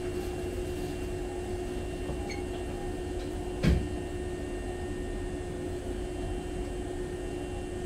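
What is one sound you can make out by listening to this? An electric commuter train stands still with its equipment humming.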